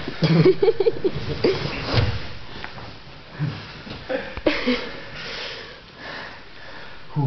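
Bodies thump and shuffle on a padded mat.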